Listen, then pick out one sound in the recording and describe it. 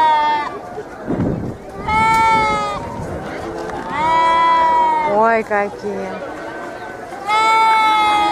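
Sheep bleat loudly and repeatedly close by.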